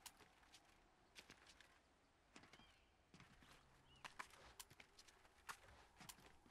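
Quick footsteps clatter on a wooden roof.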